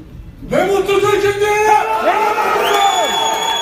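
A man shouts loudly into a microphone over loudspeakers.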